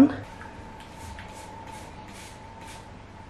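A spray bottle spritzes water in short bursts.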